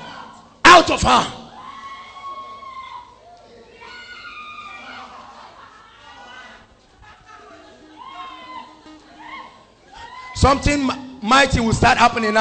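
A man preaches forcefully into a microphone, his voice booming through loudspeakers.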